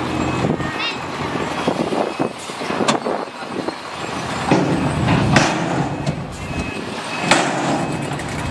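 Rocks and dirt slide and tumble out of a tipping dump truck.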